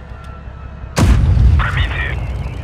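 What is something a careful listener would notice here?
A tank cannon fires with a loud boom that echoes away.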